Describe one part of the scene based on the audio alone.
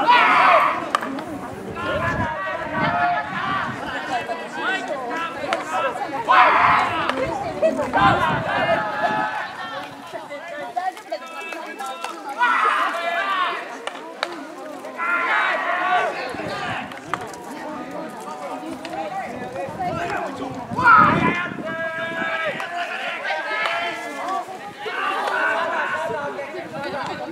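Young women shout and call out loudly across an open field.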